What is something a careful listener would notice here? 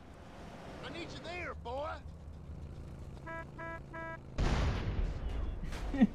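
A car explodes with a loud bang.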